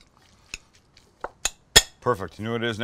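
A metal spoon clinks and scrapes against a glass bowl.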